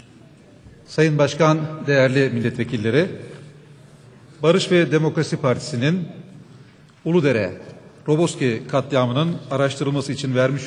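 A middle-aged man speaks forcefully into a microphone in a large echoing hall.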